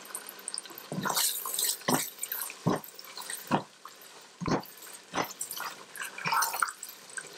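A spatula scrapes and stirs a thick paste in a metal pot.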